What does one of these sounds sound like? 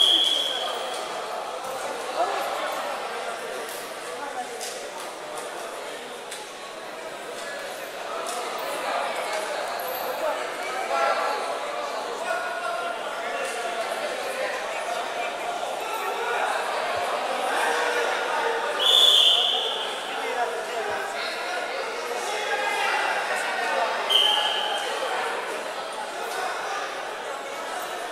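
A crowd chatters and murmurs throughout a large echoing hall.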